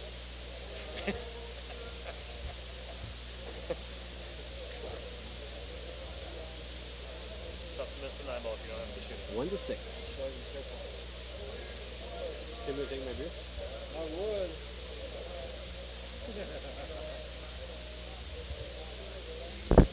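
Pool balls clack together sharply.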